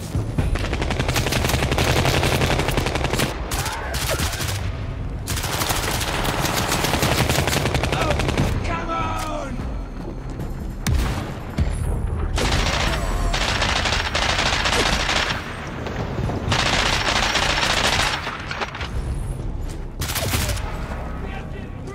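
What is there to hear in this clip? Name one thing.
A rifle fires rapid bursts close by.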